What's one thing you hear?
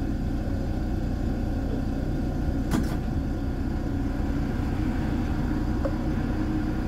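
A tram rumbles steadily along its tracks.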